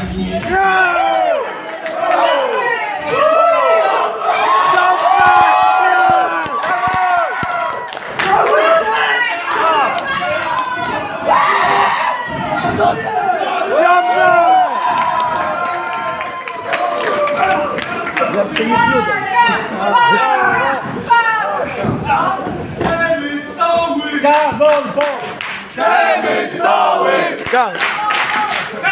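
A crowd shouts and cheers loudly in an echoing room.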